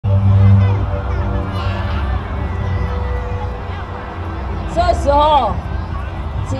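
A large outdoor crowd chatters all around.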